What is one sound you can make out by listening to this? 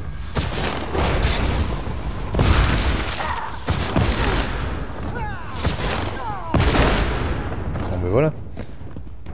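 Magic spells crackle and blast in quick bursts.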